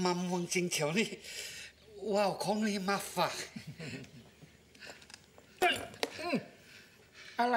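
An elderly man speaks eagerly nearby.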